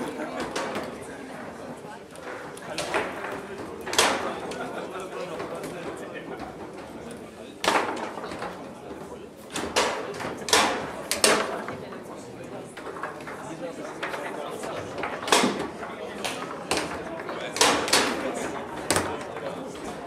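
A foosball ball cracks against the goal walls and rods with sharp knocks.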